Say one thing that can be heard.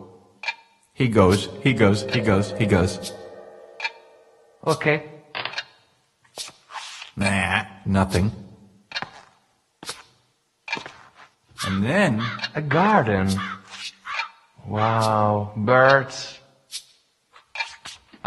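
A middle-aged man speaks with animation nearby, his voice echoing in a large room.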